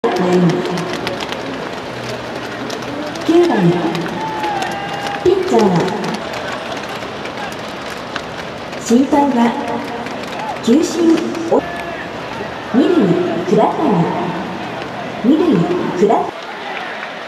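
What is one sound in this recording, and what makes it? A large crowd chants in unison in a big open stadium.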